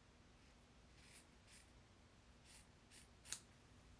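Fabric brushes softly across a carpet.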